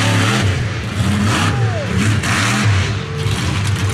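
A monster truck lands with a heavy crash.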